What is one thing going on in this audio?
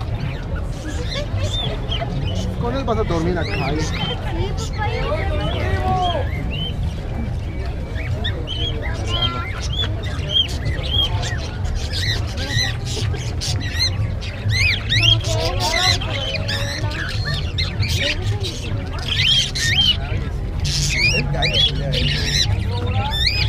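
Small caged birds chirp and tweet throughout.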